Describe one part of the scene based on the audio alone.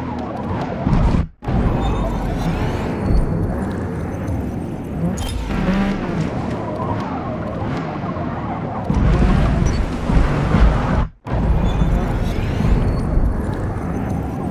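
A car engine roars and revs up and down as it races.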